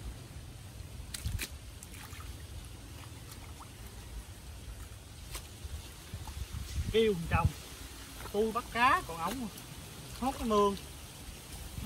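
Hands squelch and splash in shallow muddy water.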